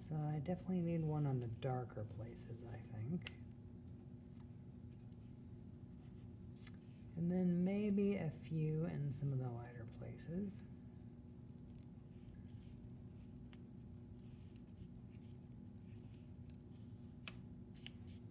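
A marker scratches across paper.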